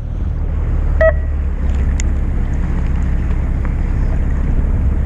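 A fishing reel clicks as line is cast out.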